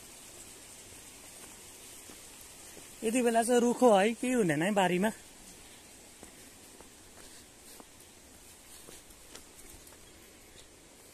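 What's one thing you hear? Footsteps crunch softly on a dirt path.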